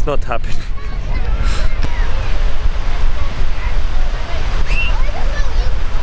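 Children's voices call out faintly in the distance.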